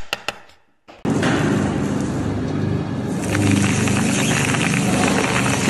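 A machine rumbles and rattles loudly.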